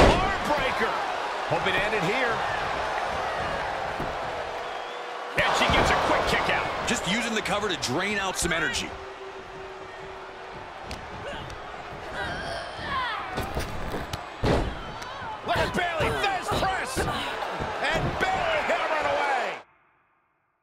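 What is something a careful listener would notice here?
A large arena crowd cheers and roars.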